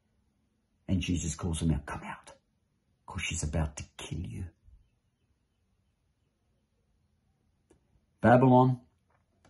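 A middle-aged man speaks calmly, close to the microphone.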